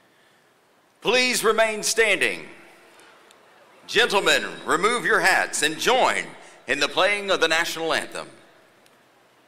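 An elderly man speaks calmly into a microphone, heard through loudspeakers.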